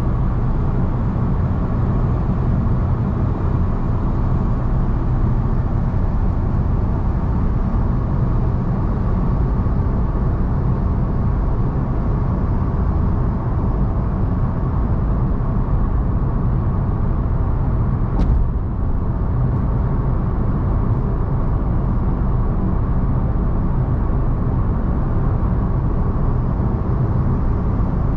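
A car drives steadily along a highway with a low, constant road rumble from inside the cabin.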